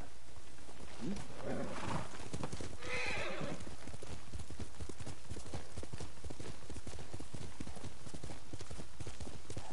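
A horse gallops, hooves drumming on soft ground.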